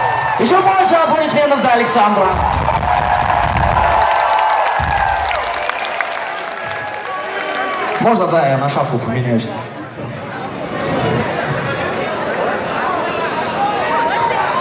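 A live rock band plays loudly through large speakers in a big echoing hall.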